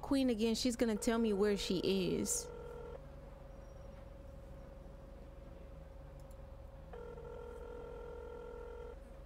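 A phone call rings out with a repeating dial tone.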